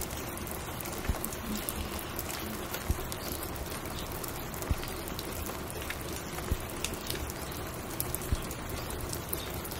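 A vinyl record crackles and pops as it spins on a turntable.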